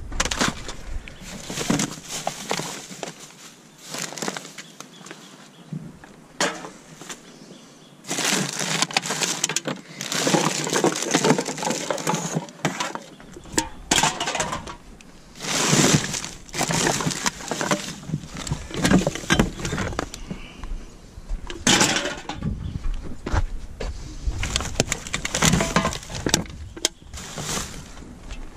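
Plastic wrappers and rubbish rustle and crinkle as gloved hands dig through a bin.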